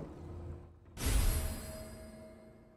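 A metallic clank sounds as an item is picked up.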